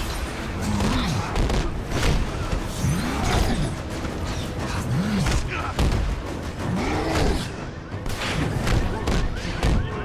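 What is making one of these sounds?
Explosions boom and crackle all around.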